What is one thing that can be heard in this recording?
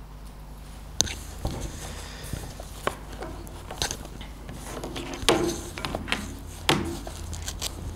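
A hand knocks against a microphone stand.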